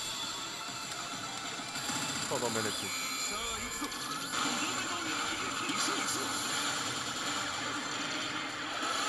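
A slot machine plays loud electronic music and sound effects.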